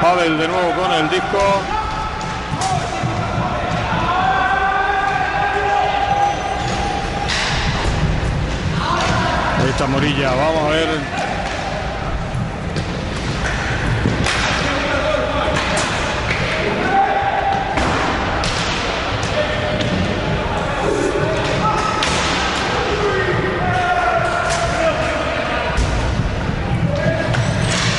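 A hockey stick clacks against a ball.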